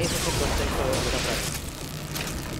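An electric blast crackles and hisses loudly.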